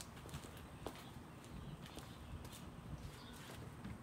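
Sneakers shuffle and step on concrete.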